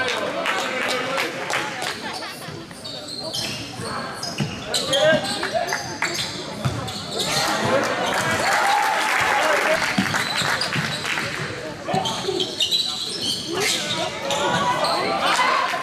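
Basketball shoes squeak sharply on a hard court in a large echoing hall.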